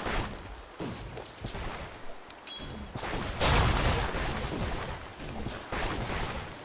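Spell blasts and weapon hits crackle and thud in a game battle.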